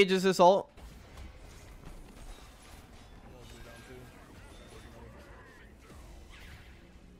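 Game spell effects whoosh and crackle.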